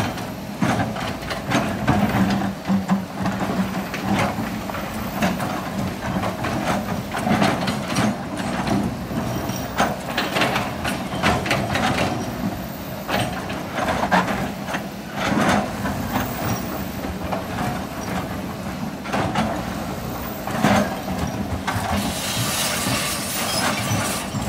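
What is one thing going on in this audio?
Rocks and dirt clatter and scrape against an excavator bucket.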